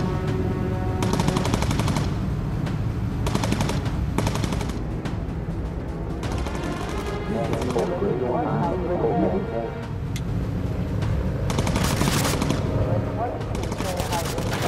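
A machine gun fires in bursts.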